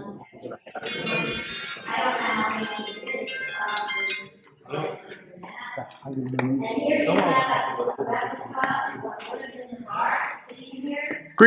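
A crowd of adult men and women talk over one another nearby, in an echoing stone hall.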